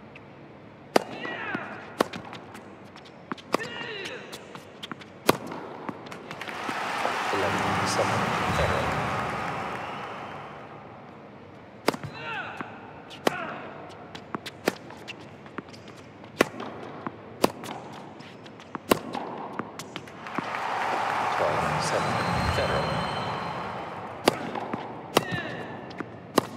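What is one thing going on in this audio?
Tennis rackets strike a ball on a hard court.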